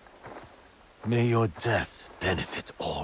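A man speaks slowly in a deep, calm voice.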